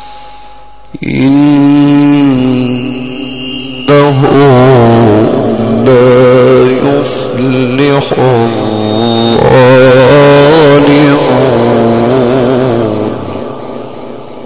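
A man chants in a long, wavering melodic voice through a microphone, with echo.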